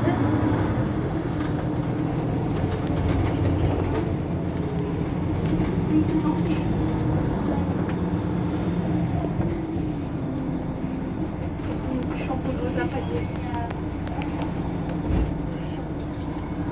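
A bus engine idles nearby with a low steady rumble.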